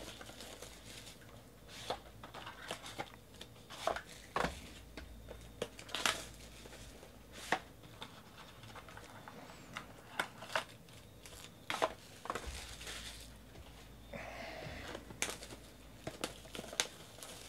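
Plastic wrap crinkles and rustles between hands.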